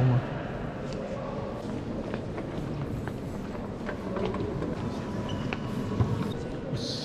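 A crowd murmurs softly in a large echoing hall.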